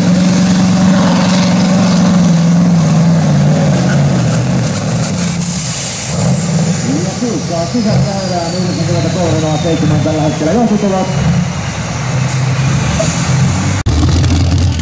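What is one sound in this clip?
A truck engine roars loudly under heavy strain.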